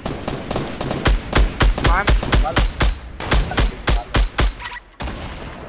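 A rifle fires a rapid string of loud shots.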